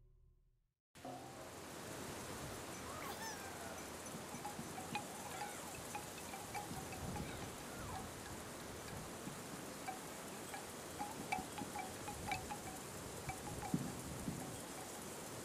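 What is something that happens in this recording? Soft forest ambience murmurs steadily.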